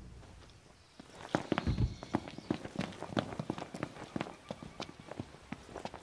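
Footsteps run quickly over gravel and dry grass.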